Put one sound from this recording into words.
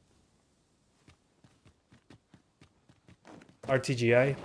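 Footsteps crunch quickly on rocky ground.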